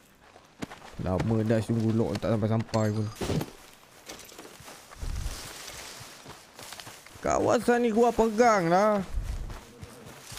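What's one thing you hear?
A young man talks into a microphone close by.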